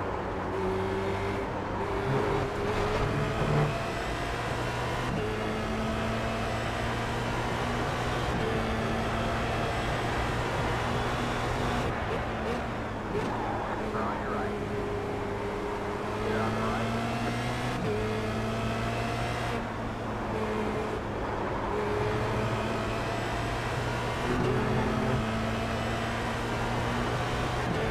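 A racing car engine roars steadily, its pitch rising and falling with gear changes.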